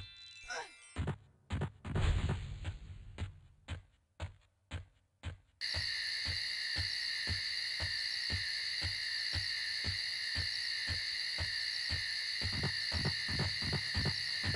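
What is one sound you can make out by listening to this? Footsteps thud quickly in a steady run.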